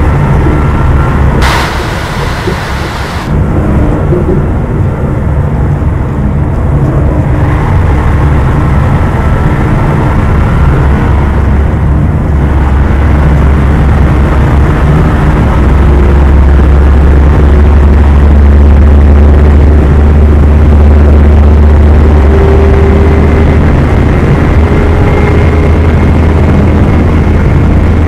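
A bus engine hums steadily and low as the bus drives along.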